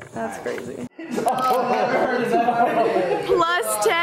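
Several young people laugh loudly together.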